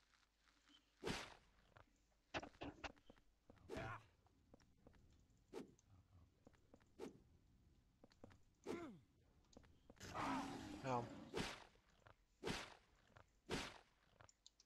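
Heavy blows thud repeatedly against a body.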